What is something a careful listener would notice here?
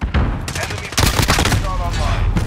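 An assault rifle fires in quick bursts.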